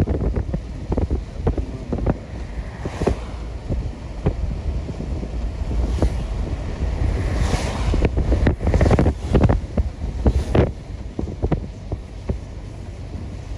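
Strong wind blows in gusts outdoors, rumbling against the microphone.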